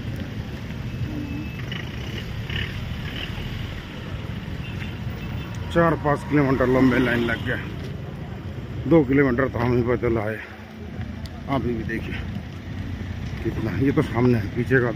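Engines of motorbikes and cars rumble steadily nearby.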